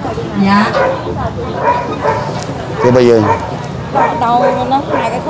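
Several adults talk nearby in overlapping voices.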